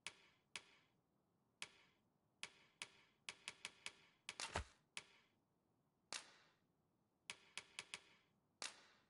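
Short bright menu clicks tick repeatedly as a cursor moves between items.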